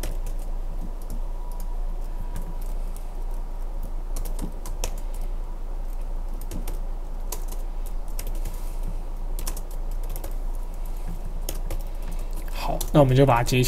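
Keys on a computer keyboard click quickly and unevenly.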